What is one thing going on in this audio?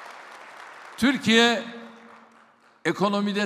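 An elderly man speaks firmly into a microphone, amplified in a large hall.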